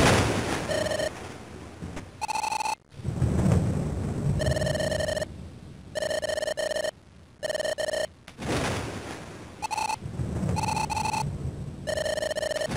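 Rapid electronic beeps chatter in short bursts.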